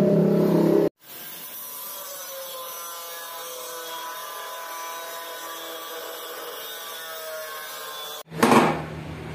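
An angle grinder whines steadily.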